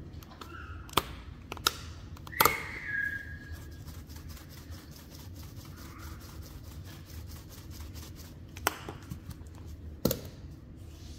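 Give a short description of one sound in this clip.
A plastic shaker lid clicks open and shut.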